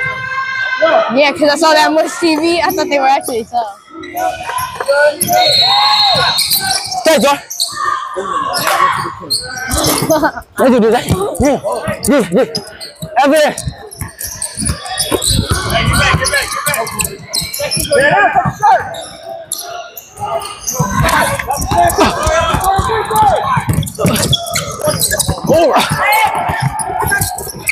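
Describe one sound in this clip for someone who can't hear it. Sneakers squeak on the hardwood court.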